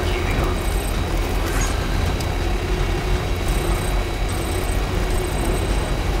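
A truck engine rumbles steadily as it drives along a road.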